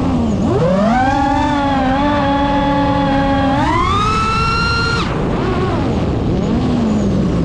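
Wind rushes past outdoors.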